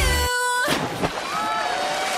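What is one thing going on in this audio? Water splashes loudly as something plunges in.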